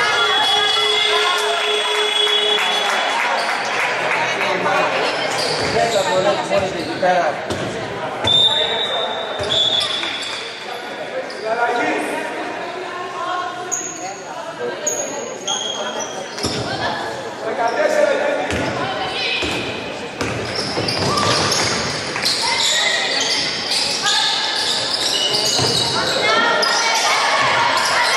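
Spectators murmur and call out in an echoing gym.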